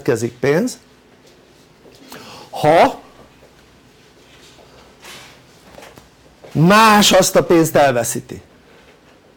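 An elderly man speaks with animation, pausing between phrases.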